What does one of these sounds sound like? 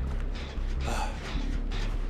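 A person clambers over a stone ledge.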